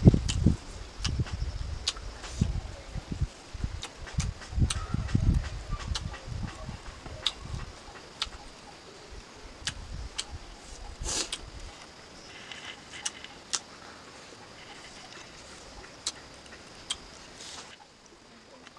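A young woman chews and crunches food close up.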